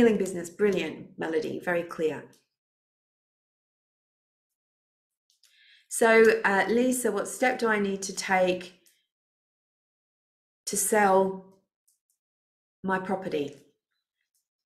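A woman speaks calmly through a microphone on an online call, pausing between phrases.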